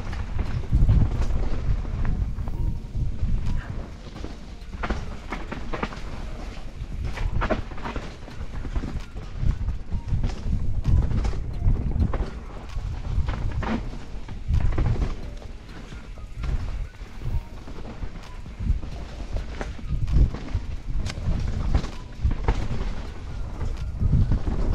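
A mountain bike rattles and clatters over bumps.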